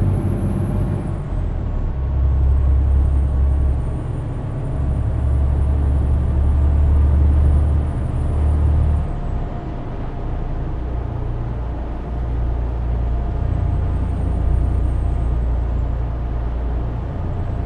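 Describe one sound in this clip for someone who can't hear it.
Tyres roll over a road.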